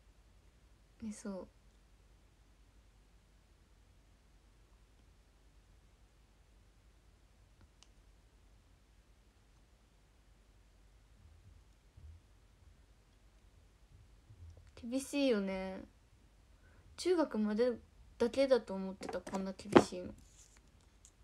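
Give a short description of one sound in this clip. A young woman speaks close to a phone microphone, in short bursts.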